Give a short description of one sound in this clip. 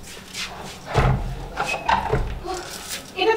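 A door thumps.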